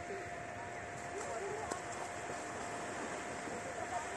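A man splashes as he wades into the sea.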